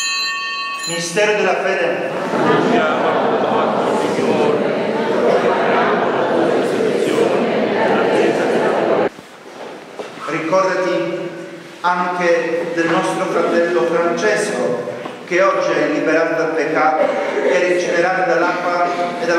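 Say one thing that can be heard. A man sings a chant through a microphone in an echoing hall.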